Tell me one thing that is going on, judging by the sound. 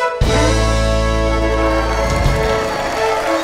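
Fiddles play a lively tune with a full band.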